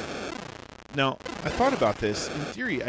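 A man talks close to a microphone.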